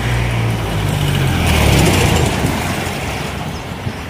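A truck roars past close by.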